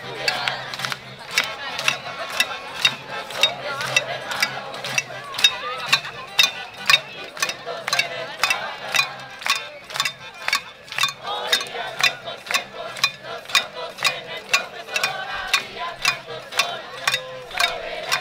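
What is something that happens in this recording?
A crowd chants loudly outdoors.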